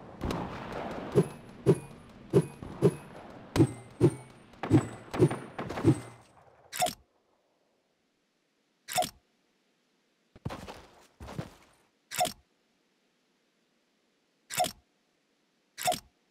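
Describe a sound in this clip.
Footsteps thud quickly over soft ground.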